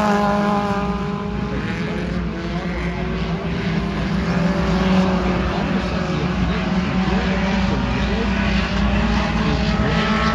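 A race car engine roars loudly.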